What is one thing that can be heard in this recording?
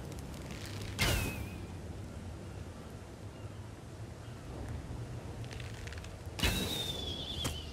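A torch bursts into flame with a sharp whoosh.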